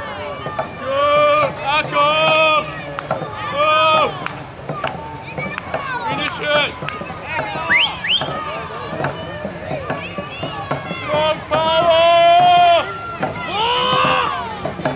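Crowds of rowers shout and cheer together outdoors.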